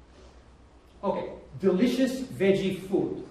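A man speaks clearly to an audience in a room with a slight echo.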